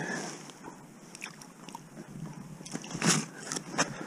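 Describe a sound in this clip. A fish flops and slaps on ice.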